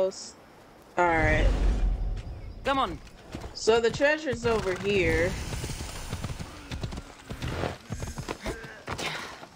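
A horse's hooves clop on a dirt path.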